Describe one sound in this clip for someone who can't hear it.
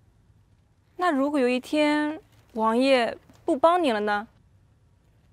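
Another young woman speaks with feeling, close by.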